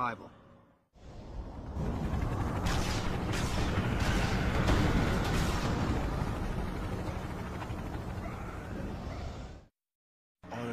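A fiery explosion roars and rumbles.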